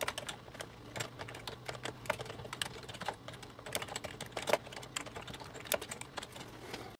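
Keyboard keys click quickly and unevenly as someone types.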